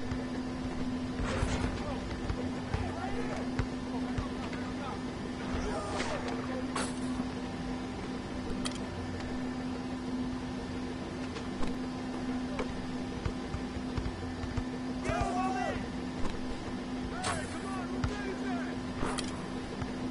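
Sneakers squeak on a court.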